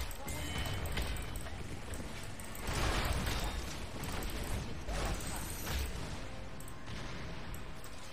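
Fantasy battle sound effects whoosh, clash and burst loudly.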